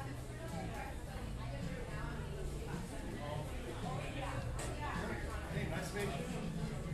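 A crowd of men and women chatter indistinctly in a busy room.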